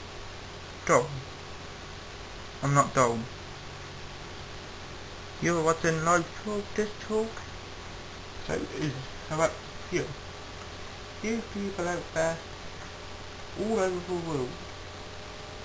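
A young man talks casually in short bursts, close to the microphone.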